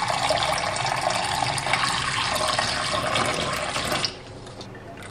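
Water pours from a tap into a metal pot.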